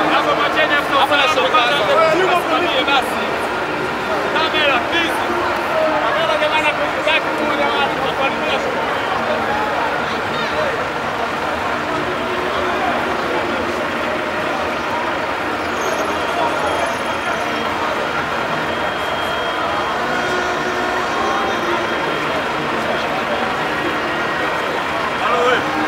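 A crowd of men chatter and call out nearby outdoors.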